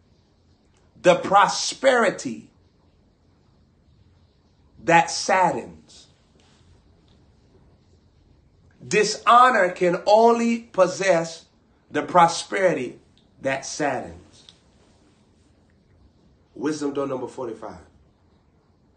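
A young man speaks close to the microphone in short, animated bursts with pauses between them.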